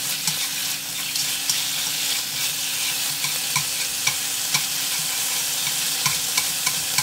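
Chopsticks tap and scrape against a metal pan.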